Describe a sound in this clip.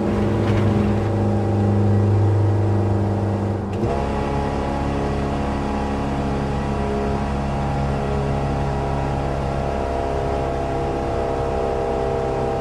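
A car engine drones steadily at high revs, dropping in pitch briefly as it shifts gear.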